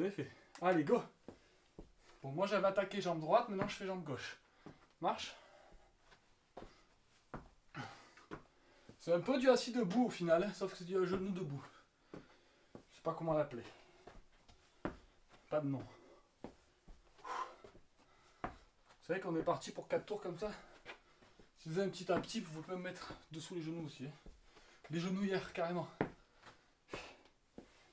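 Feet thud and shuffle on the floor as a man lunges.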